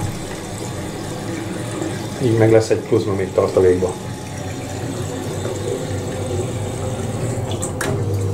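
A boiler hums steadily.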